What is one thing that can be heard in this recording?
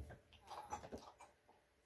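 Blocks crunch and break in a video game.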